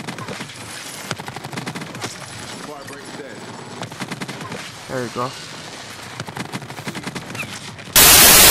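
Rapid gunfire crackles from a video game.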